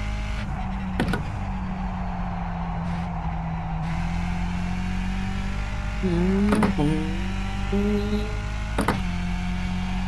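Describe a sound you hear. Short clicks sound as the car shifts gears.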